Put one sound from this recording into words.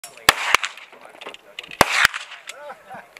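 Pistol shots crack sharply outdoors, one after another.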